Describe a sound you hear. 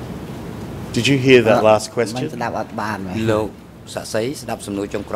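A man speaks formally through a microphone.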